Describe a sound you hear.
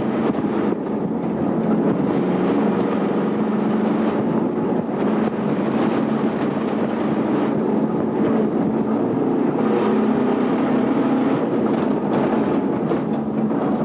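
Tyres crunch and rumble over a rough dirt road.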